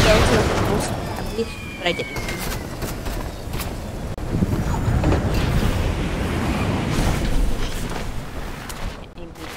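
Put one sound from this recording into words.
Air rushes loudly past a falling figure and then dies away.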